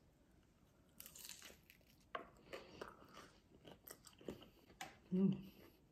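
A young woman chews crunchy food close to a microphone.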